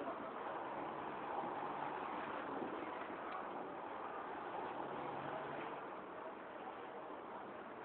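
A crowd murmurs faintly in a large echoing hall.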